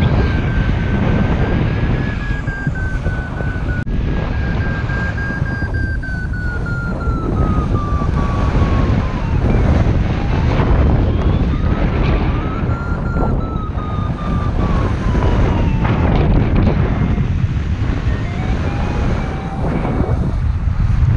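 Strong wind rushes and buffets steadily outdoors at height.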